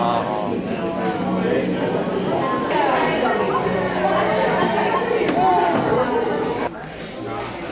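A young woman talks close by.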